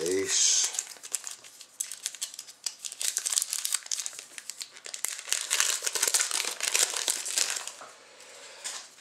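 Trading cards slide and rustle against each other.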